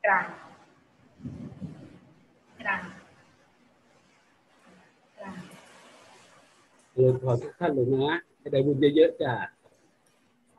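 An elderly man speaks slowly over an online call.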